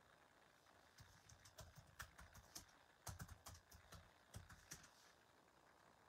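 Fingers tap on a laptop keyboard.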